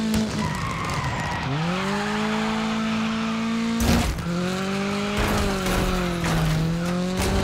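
A rally car engine revs hard, rising and falling with gear changes.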